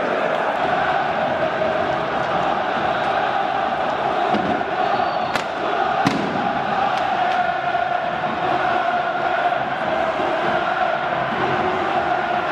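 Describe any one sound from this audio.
Flares and firecrackers pop and bang.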